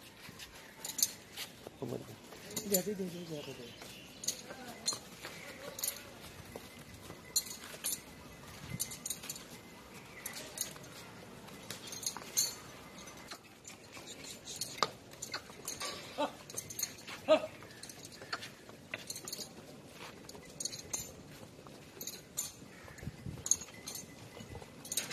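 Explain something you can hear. Hooves of buffaloes step and shuffle on dry dirt.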